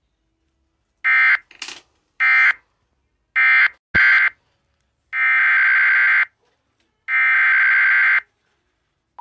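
Harsh electronic bursts screech in short blasts through a loudspeaker.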